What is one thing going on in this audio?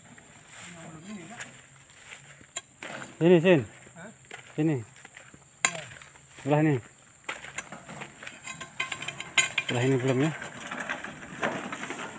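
A wheelbarrow rattles as it is pushed along a dirt path.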